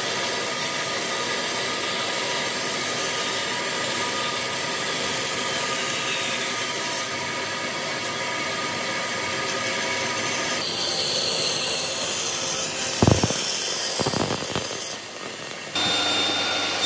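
A band saw hums steadily as it cuts through wood.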